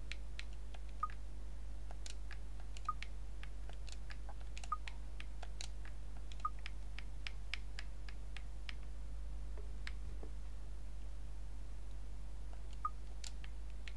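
Short soft interface clicks sound as menu items are selected.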